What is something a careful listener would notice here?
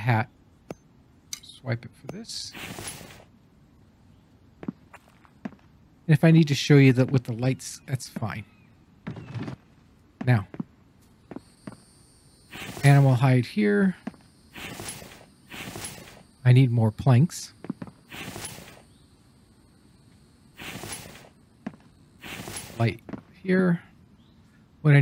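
An older man talks calmly and closely into a microphone, in bursts with pauses.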